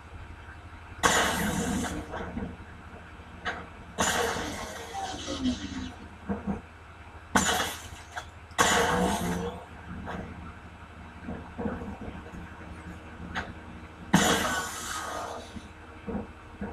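Electrical zaps crackle from a video game through a television speaker.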